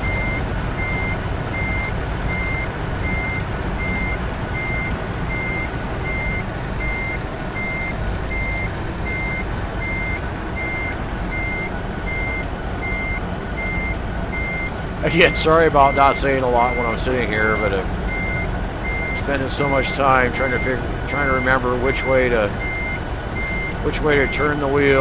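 A heavy truck engine rumbles steadily while reversing.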